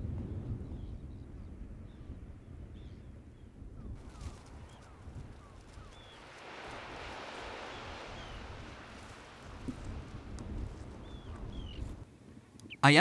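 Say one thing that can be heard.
A horse's hooves thud softly on sand and grass.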